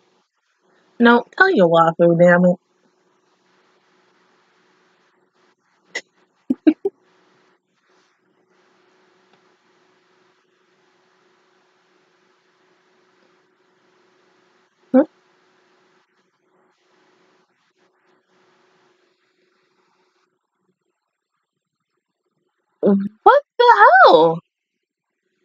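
A young woman speaks briefly, close to a microphone.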